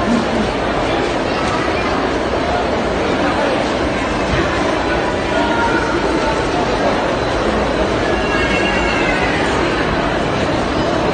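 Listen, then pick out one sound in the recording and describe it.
A crowd of shoppers murmurs and chatters in a large echoing hall.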